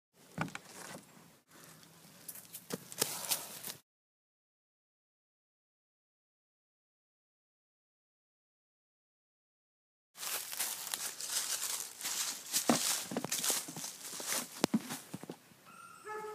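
Dry leaves crunch and rustle under footsteps.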